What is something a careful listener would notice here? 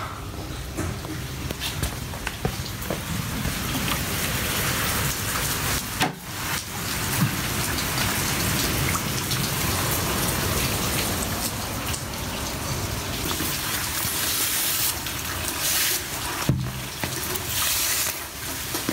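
Heavy rain pours down and splashes on hard ground outside.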